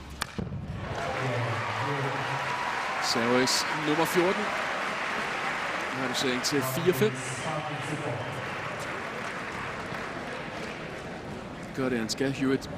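A crowd applauds and murmurs in a large open stadium.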